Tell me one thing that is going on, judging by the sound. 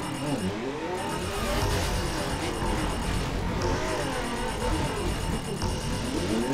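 Tyres screech as a car skids and drifts.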